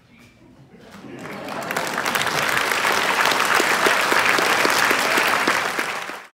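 An audience applauds loudly in a large hall, the clapping swelling quickly and then going on steadily.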